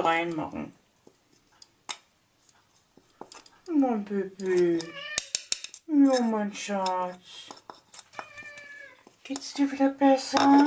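A spoon scrapes and taps against a bowl.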